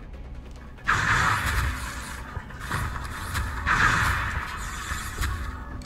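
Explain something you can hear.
Energy weapons fire in loud, crackling bursts.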